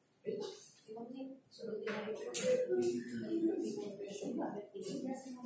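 A woman talks calmly nearby in an echoing room.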